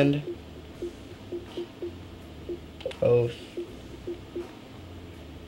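Soft menu clicks tick at a steady pace.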